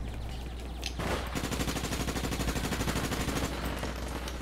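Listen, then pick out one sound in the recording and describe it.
A gun fires rapid shots close by.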